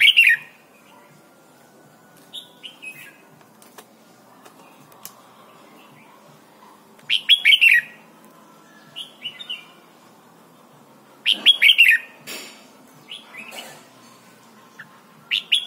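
A songbird sings loud, clear bursts of whistled notes close by.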